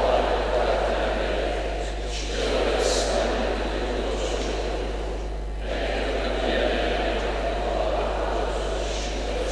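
A man reads aloud steadily through a microphone in a large echoing hall.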